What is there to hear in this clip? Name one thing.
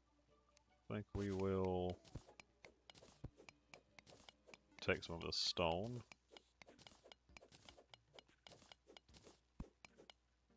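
A pickaxe taps rapidly at blocks with short clicks.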